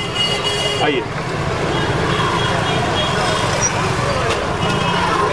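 A busy street crowd murmurs and bustles outdoors.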